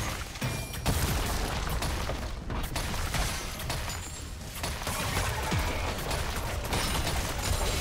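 Game spell effects crackle and boom in a fast fight.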